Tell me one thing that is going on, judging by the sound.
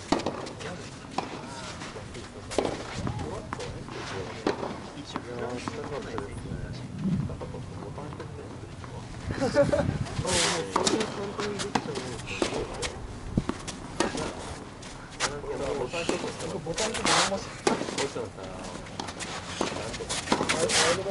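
A tennis ball bounces on the court.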